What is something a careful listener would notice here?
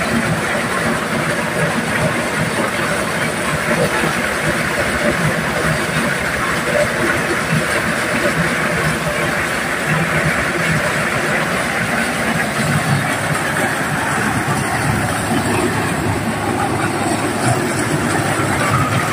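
A threshing machine engine roars loudly and steadily.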